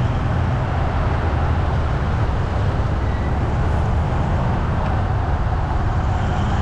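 Tyres roll on the road surface with a steady rumble.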